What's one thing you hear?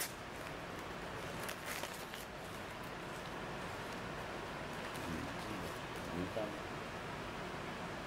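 A paper wrapper rustles around a sandwich.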